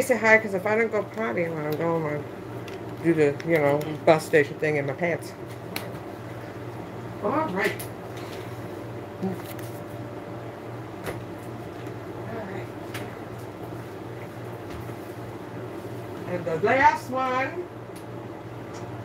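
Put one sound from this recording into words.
A middle-aged woman talks casually close by.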